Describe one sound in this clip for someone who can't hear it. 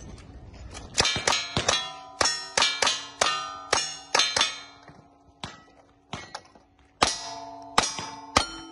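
Gunshots crack in quick succession outdoors.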